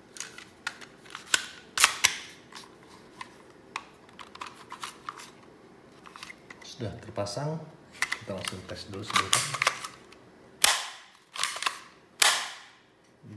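Plastic pistol parts click and clack as they are handled.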